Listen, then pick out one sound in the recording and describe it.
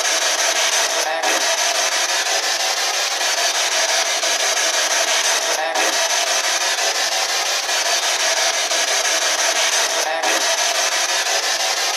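A handheld radio device hisses with loud, steady static.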